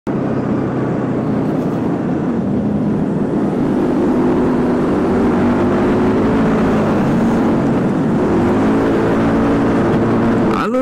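A motorcycle engine hums steadily close by, rising and falling in pitch as it speeds up.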